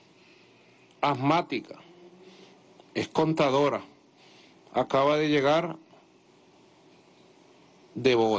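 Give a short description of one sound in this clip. A man speaks calmly into a microphone, reading out in short phrases.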